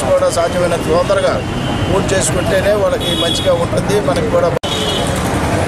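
An elderly man speaks loudly and with animation close by.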